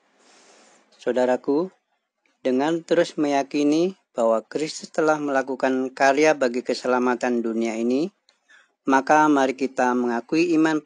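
A man reads out calmly through a microphone.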